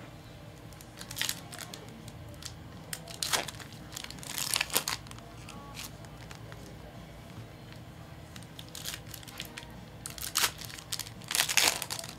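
Foil wrappers crinkle and rustle close by.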